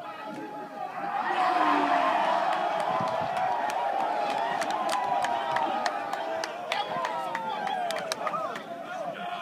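A large group of young men shout and chant together outdoors.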